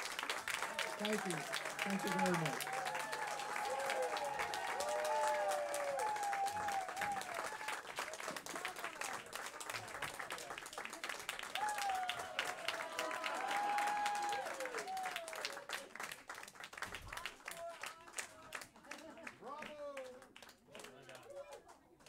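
Men and women in an audience cheer and whoop.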